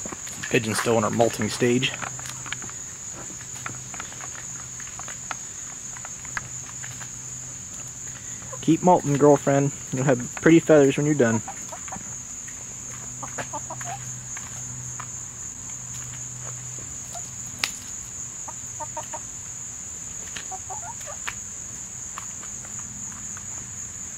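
Hens peck at food on hard ground with light taps.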